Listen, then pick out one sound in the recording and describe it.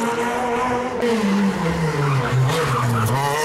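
A second rally car engine roars up close and revs hard.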